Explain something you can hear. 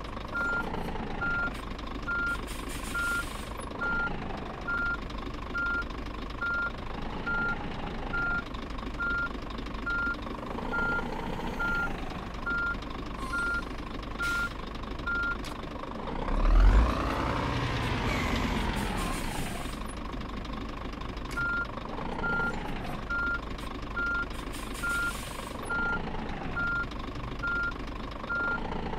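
A truck's reversing alarm beeps.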